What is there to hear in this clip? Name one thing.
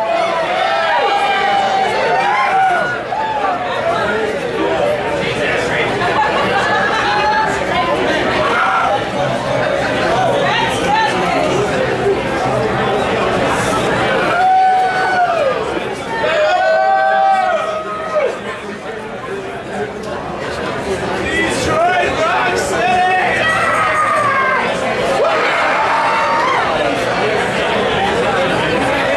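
A crowd of men and women chatters and laughs nearby.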